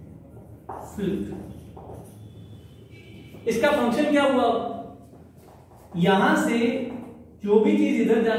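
A man speaks calmly and clearly, close by, in a slightly echoing room.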